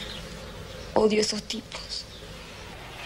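A young woman speaks softly and weakly, close by.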